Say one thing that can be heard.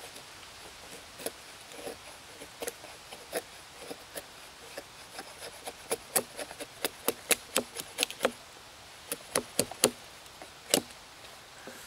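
An axe taps sharply on wood.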